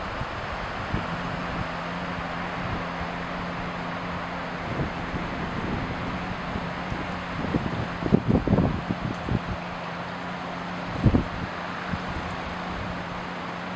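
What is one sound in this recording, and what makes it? A man hums a low, steady tone.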